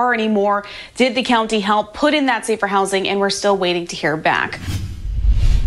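A young woman speaks calmly and clearly into a microphone.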